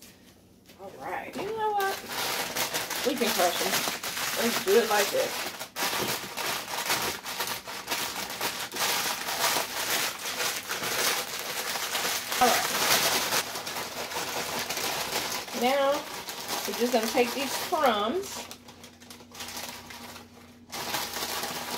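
A plastic bag rustles and crinkles as hands handle it.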